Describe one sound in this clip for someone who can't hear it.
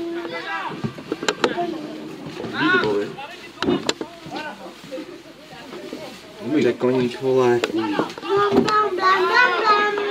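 Footballers shout to each other across an open pitch.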